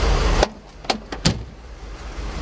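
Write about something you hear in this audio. A heavy car door shuts.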